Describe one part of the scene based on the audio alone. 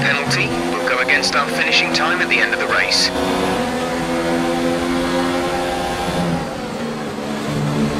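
A racing car engine whines at high revs, shifting through gears.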